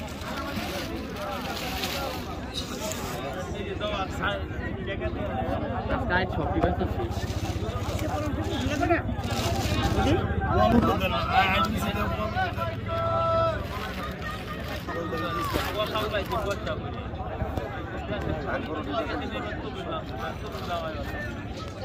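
Plastic bags rustle as fish are handled.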